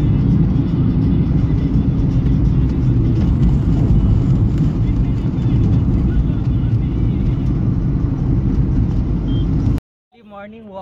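A car engine hums and tyres rumble on the road from inside a moving car.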